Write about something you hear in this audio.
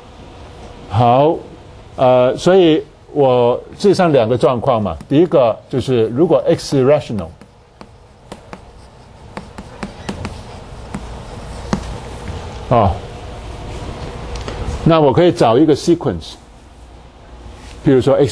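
A man speaks calmly and clearly through a close microphone.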